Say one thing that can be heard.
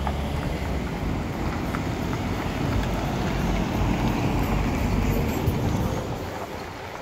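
A car engine rumbles as a vehicle pulls away nearby.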